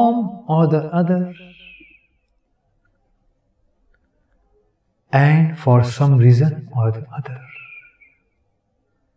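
An elderly man speaks calmly and clearly into a close microphone, pausing between phrases.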